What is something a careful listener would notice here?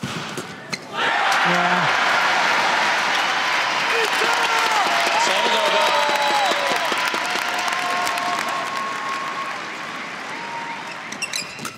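A large crowd cheers and applauds loudly in a big hall.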